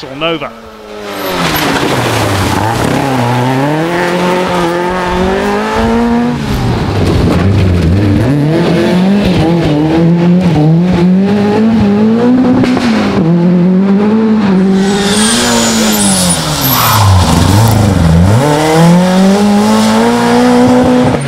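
A rally car engine revs hard and roars past, its pitch repeatedly rising and falling.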